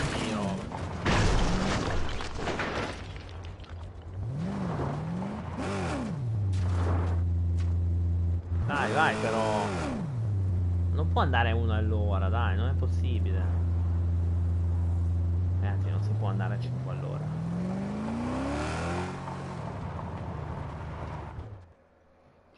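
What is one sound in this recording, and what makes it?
A video game car's engine revs and drones while driving.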